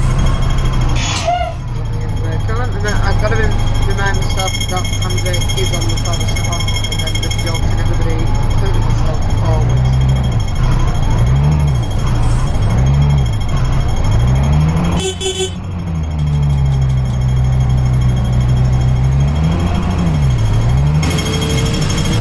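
A bus engine rumbles steadily, rising and falling in pitch as it idles and revs.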